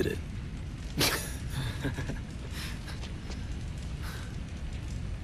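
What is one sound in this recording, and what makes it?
An older man speaks in a low, calm voice.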